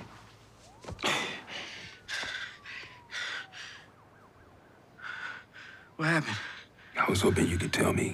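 A man speaks in a strained, shaken voice close by.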